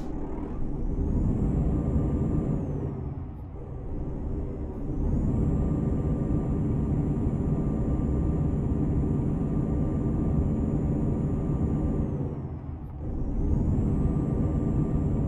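A truck engine rumbles steadily, dipping briefly as gears change.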